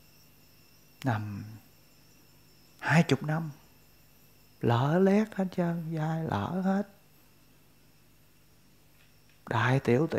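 A middle-aged man speaks calmly and close by, in short phrases with pauses.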